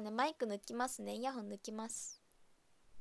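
A young woman speaks calmly and close to a microphone.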